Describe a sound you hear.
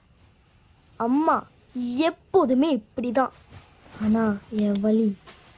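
A young boy speaks in a complaining, upset tone.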